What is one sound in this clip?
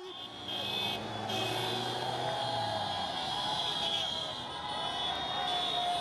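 Motorbike engines rumble as they ride slowly through the crowd.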